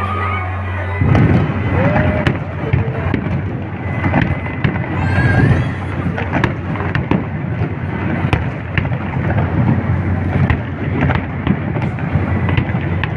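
Fireworks bang and crackle loudly in rapid bursts outdoors.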